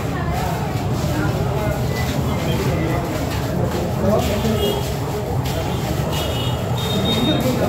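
Footsteps shuffle as a group of men walks past.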